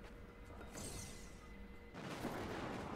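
A magical portal hums and whooshes.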